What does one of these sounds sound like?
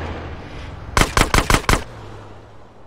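A pistol fires a quick burst of shots.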